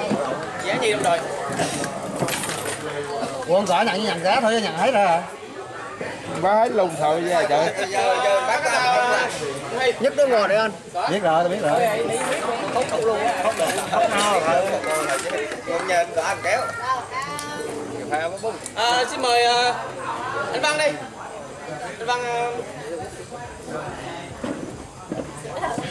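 Several men talk and chatter at once nearby.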